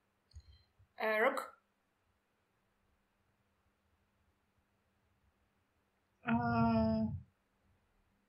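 A young woman speaks briefly over an online call.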